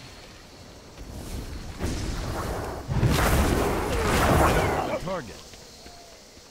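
Magic spells burst and whoosh loudly.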